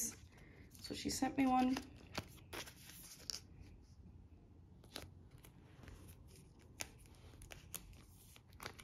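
Plastic sleeves rustle and crinkle as cards are handled.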